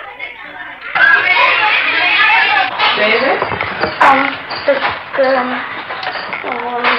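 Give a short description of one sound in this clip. Children talk and chatter close by.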